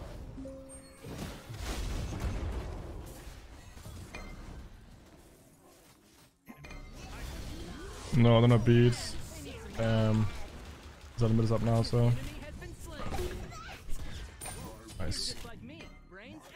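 Game spells whoosh and blast.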